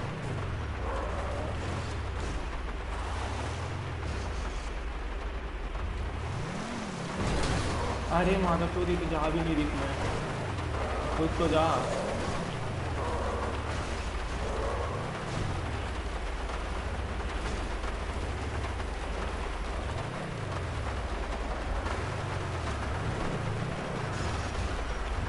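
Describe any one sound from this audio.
A car engine revs up and down again and again.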